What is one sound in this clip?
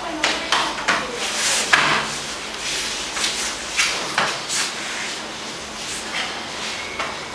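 Cotton uniforms rustle and swish as grapplers scramble.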